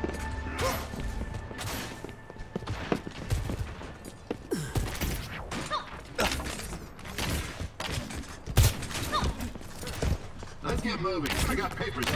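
Quick footsteps patter on hard ground as a game character runs.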